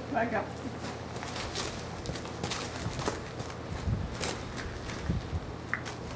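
A horse's hooves shuffle on gravel.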